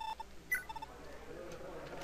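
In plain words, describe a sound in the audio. Short electronic blips chime.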